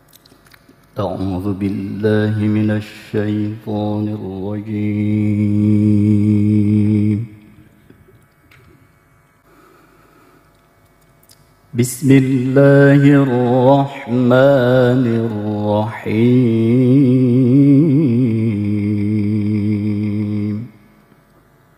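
A man chants in a long, melodic voice through a microphone and loudspeakers, in two long phrases with a pause between them.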